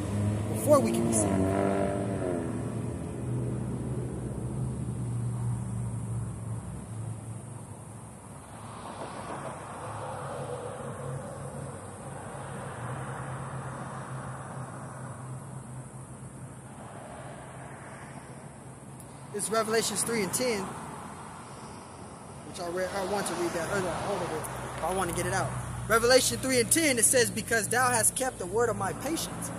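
Traffic hums steadily on a nearby road.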